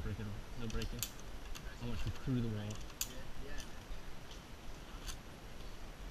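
Metal carabiners click against a steel cable.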